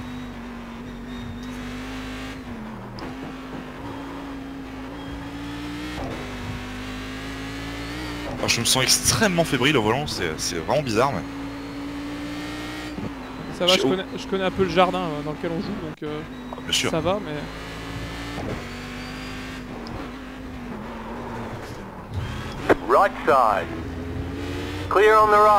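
A racing car engine drones steadily, its pitch shifting up and down as it changes gear.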